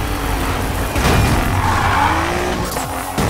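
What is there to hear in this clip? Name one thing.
Tyres skid and screech on the road.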